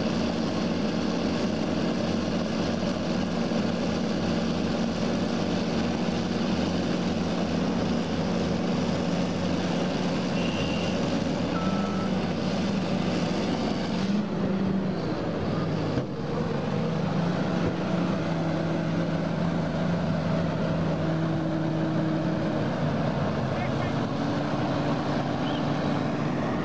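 A bulldozer's diesel engine roars loudly and steadily.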